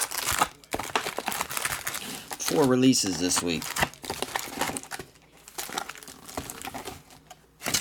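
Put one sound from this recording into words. Card packs rustle and clack as they are stacked.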